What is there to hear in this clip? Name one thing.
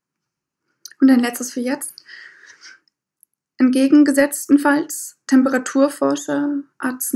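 A young woman reads aloud close to a microphone.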